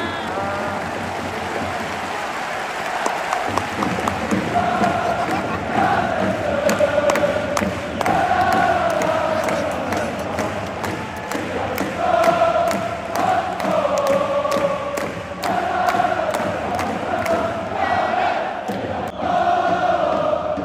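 Spectators clap in rhythm with the chant.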